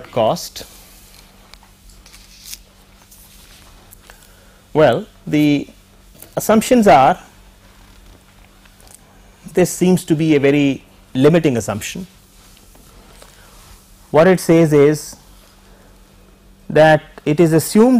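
An elderly man speaks calmly in short phrases, heard close through a microphone.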